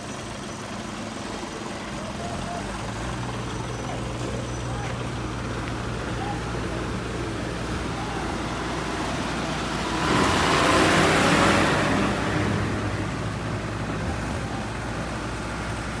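A heavy truck engine idles with a low, steady rumble.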